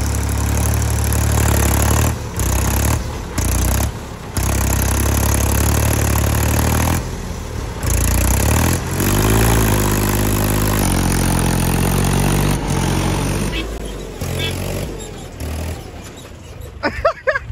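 A tractor engine roars and labours nearby.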